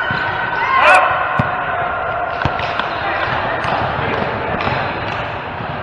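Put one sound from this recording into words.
Sports shoes squeak on a sports court floor.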